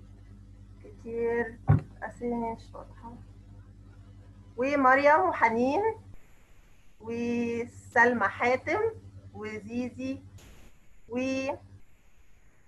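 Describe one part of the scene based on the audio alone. A young woman speaks warmly over an online call.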